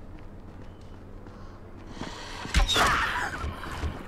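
A metal door creaks open.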